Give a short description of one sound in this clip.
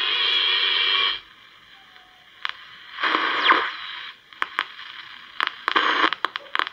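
A small transistor radio plays tinny, crackling sound through its little speaker.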